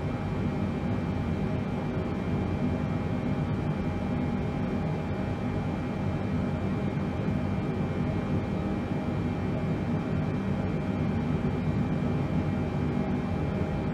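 A steady, low drone of an airliner's engines hums throughout.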